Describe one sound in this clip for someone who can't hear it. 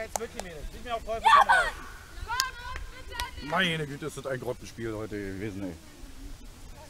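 Women players call out across an open field outdoors.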